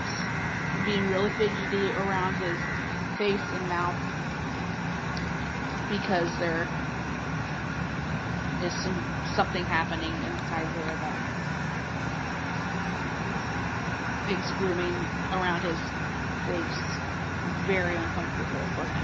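A woman talks quietly and briefly close by.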